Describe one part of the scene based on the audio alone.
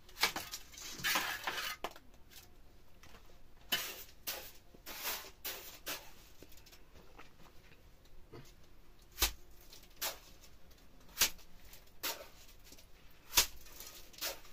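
A trowel scrapes across wet plaster.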